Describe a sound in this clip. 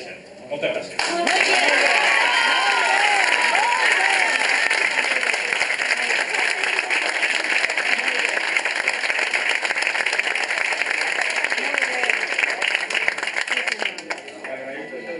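A group of people applaud loudly in a room.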